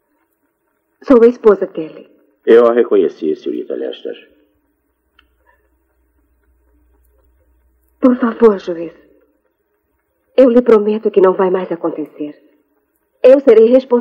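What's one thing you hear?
A young woman speaks earnestly and close by.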